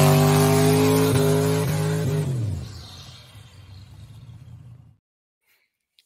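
A truck engine revs loudly, then fades away.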